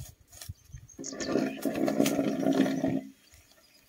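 Bamboo poles drag and scrape through dry grass.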